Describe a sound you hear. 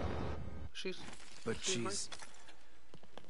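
A man speaks briefly in a surprised, halting voice.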